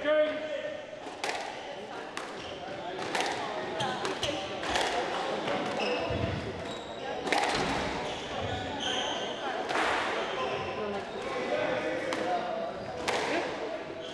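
A squash ball smacks sharply off rackets and walls, echoing in a hard-walled court.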